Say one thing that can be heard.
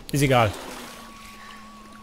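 Water splashes around a swimmer.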